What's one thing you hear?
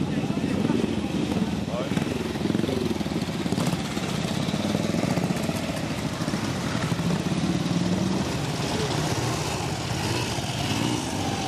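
Motorcycle engines idle and rumble steadily close by.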